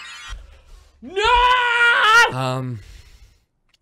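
A young man exclaims loudly and excitedly close to a microphone.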